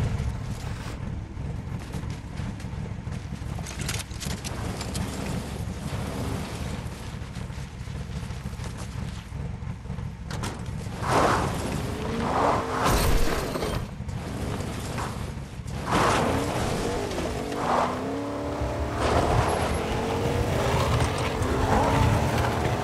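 A pickup truck's engine runs as it drives.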